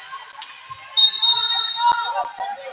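A referee's whistle blows a short shrill blast.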